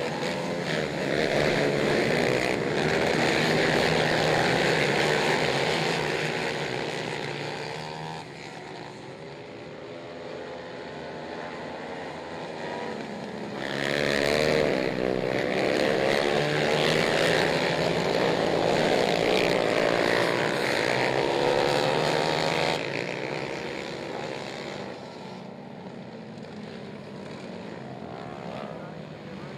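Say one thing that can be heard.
Quad bike engines roar and whine as they race past, rising and falling as they go by.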